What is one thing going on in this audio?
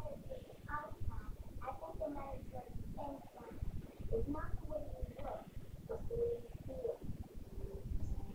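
A young child talks close by.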